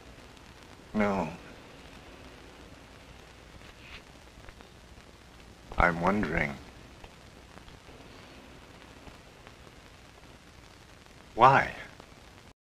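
A man speaks calmly in short phrases close by.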